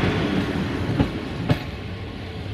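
Wheels clack sharply over a rail joint.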